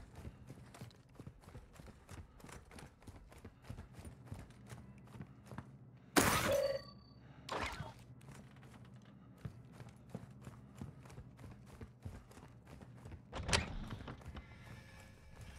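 Footsteps tap quickly on hard stairs and floor.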